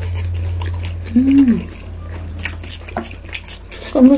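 A man chews food loudly close to a microphone.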